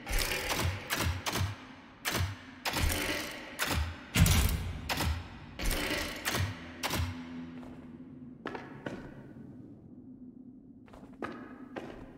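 A heavy metal mechanism clanks and thuds in quick bursts.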